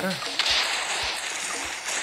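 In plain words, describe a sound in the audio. Guns fire in rapid bursts.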